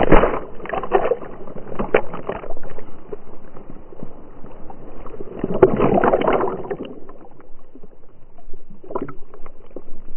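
Water splashes loudly around a swimming dog.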